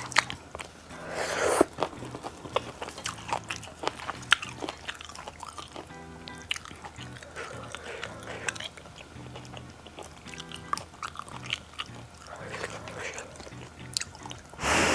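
A woman chews wet food noisily close to a microphone.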